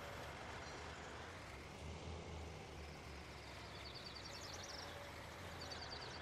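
A tractor engine rumbles steadily at low speed.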